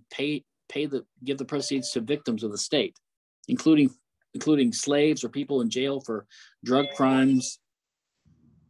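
An older man speaks with animation over an online call.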